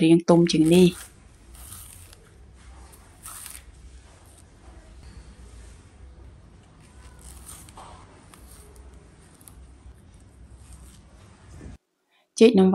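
A knife scrapes and cuts softly through banana peel.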